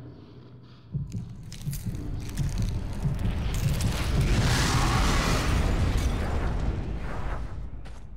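A loud magical blast bursts and rumbles.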